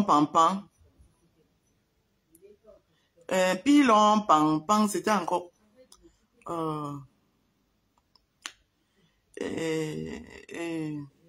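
A woman speaks close to the microphone in short, expressive bursts with pauses.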